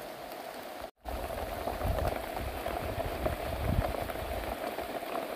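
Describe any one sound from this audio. Rainwater drips from the edge of a thatched roof.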